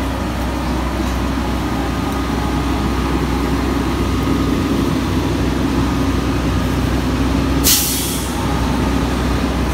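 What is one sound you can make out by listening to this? Footsteps scuff on wet pavement.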